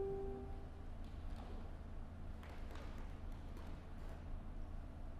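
Footsteps tap softly across a wooden stage.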